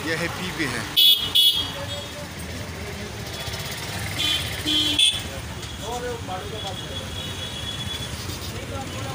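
Traffic rumbles on a busy street.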